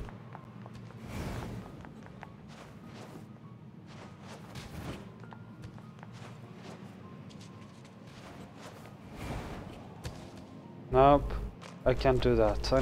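Quick footsteps patter on stone.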